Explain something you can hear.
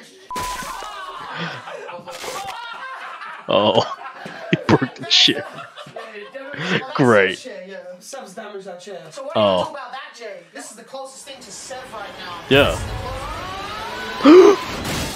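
Several young men shout and laugh loudly, close by.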